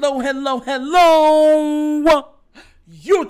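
A young man sings a long, drawn-out note into a microphone.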